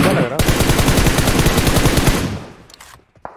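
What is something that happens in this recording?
Rapid gunfire rings out loudly.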